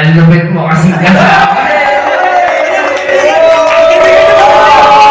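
A group of young men shout and cheer.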